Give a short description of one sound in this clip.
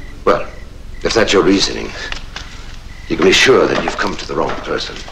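A man speaks calmly and firmly nearby.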